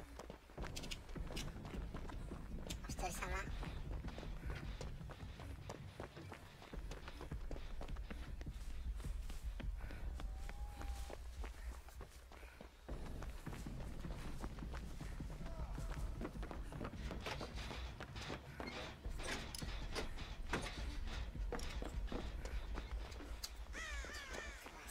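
Quick footsteps run over creaking wooden floors and grass.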